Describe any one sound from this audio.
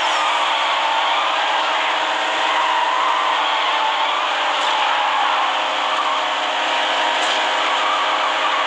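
A car engine roars at high speed with a steady whine.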